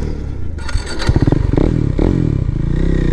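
A motorcycle engine revs sharply.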